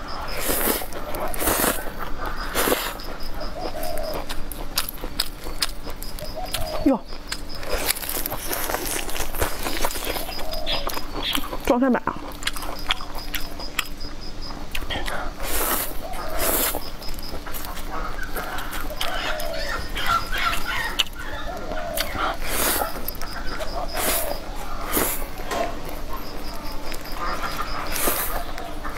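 A young woman slurps noodles loudly, close to a microphone.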